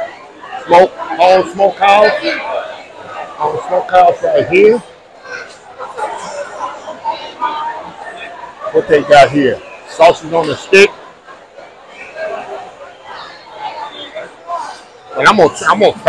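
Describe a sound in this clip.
A crowd murmurs and chatters in a large tented hall.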